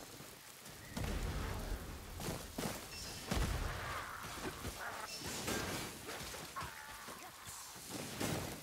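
A sword slashes and strikes with heavy thuds.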